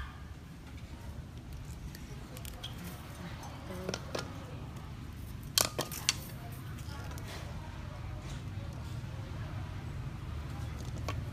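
Thin sticks scrape and rustle under busy fingers.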